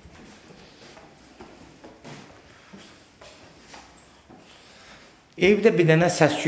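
Footsteps thud softly on wooden stairs.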